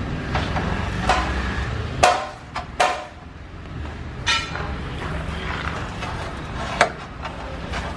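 Stiff boards knock and clatter against each other close by.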